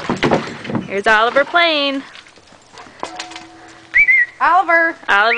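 A dog yelps and whines in high bursts.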